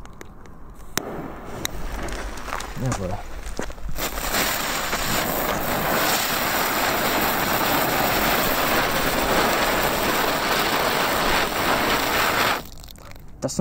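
Small ground fireworks hiss and crackle loudly.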